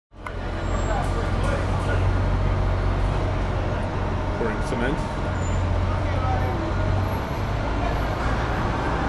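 A paving machine engine rumbles heavily.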